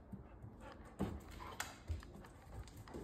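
A large dog's claws click on a hard floor.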